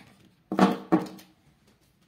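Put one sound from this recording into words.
Plastic marker pens clack together in a hand.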